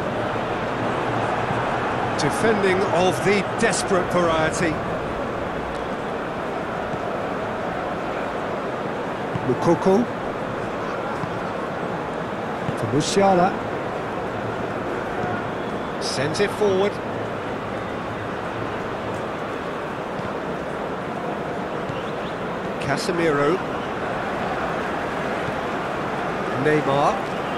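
A large crowd murmurs and roars steadily in a big open stadium.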